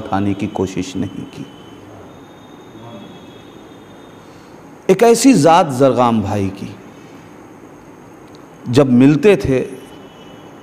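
A man speaks with animation into a close microphone, with pauses between phrases.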